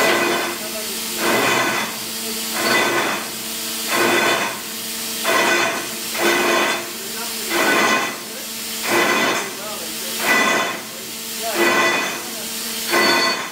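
A drilling rig hammers and rumbles loudly, rising and falling in regular pulses.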